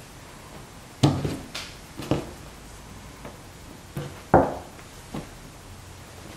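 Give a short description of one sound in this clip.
Soft thumps sound as folded clothes are patted down on a table.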